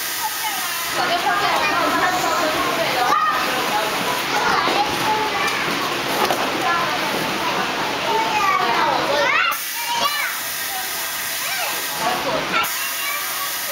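A small girl babbles and squeals nearby.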